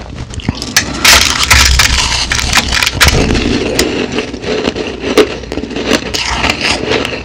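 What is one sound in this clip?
Crushed ice crunches loudly and crisply close to a microphone as a woman chews.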